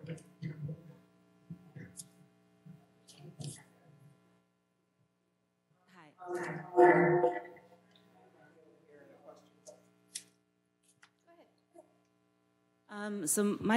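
A woman speaks calmly through a microphone in a large hall.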